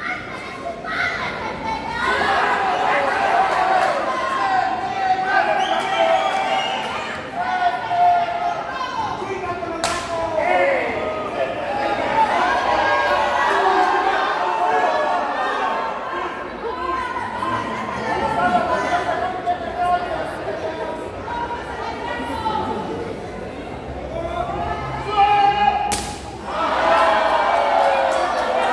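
A crowd shouts and chants loudly in a large echoing hall.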